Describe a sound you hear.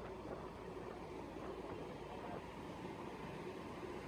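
A speedboat's motor roars past in the distance.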